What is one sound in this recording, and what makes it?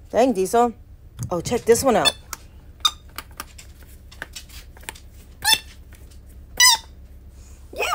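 A rubber ball toy squeaks as a hand squeezes it.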